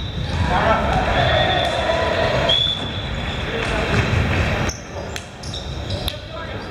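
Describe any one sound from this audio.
Young men call out and chatter in a large echoing gym.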